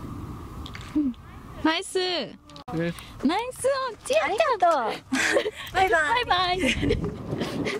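A young woman laughs and talks excitedly nearby.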